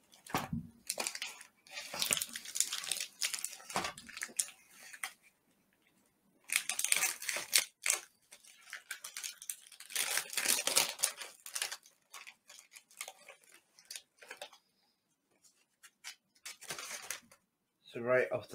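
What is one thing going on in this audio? Packaging crinkles and rustles in a man's hands.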